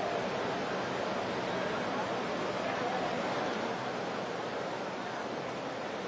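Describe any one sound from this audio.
A crowd murmurs outdoors in the distance.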